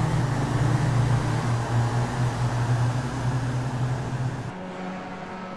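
A racing car engine roars loudly at high speed.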